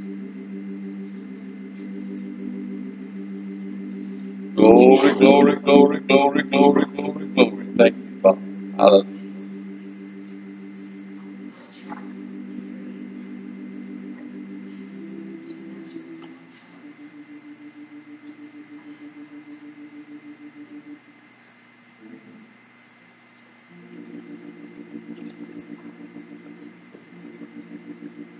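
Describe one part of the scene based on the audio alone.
Soft organ-like keyboard chords play steadily in a large echoing hall.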